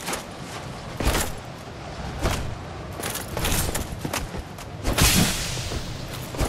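Metal weapons clash and strike with heavy blows.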